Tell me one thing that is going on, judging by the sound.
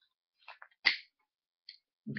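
A lighter clicks and sparks.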